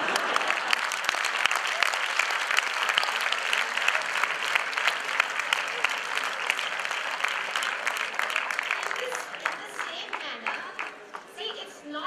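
A large audience claps and cheers in a big echoing hall.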